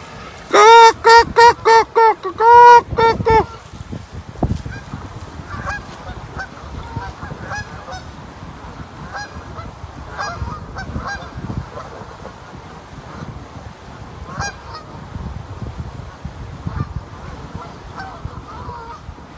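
A flock of Canada geese honks outdoors on open water.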